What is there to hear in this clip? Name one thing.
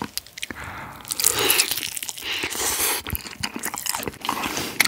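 Crispy fried chicken crunches as a young man bites into it.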